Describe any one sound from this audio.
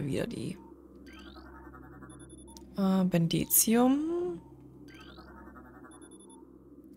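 An electronic scanner hums and chirps.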